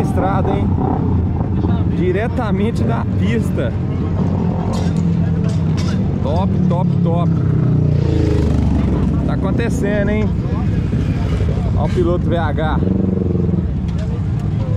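Motorcycle engines idle and rumble nearby.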